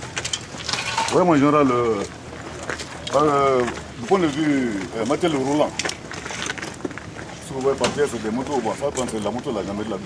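A man speaks calmly and firmly close by, outdoors.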